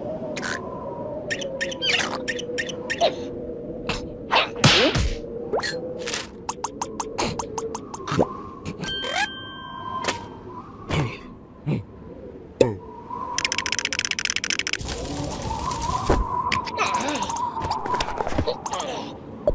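A man's high, squeaky cartoon voice babbles excitedly.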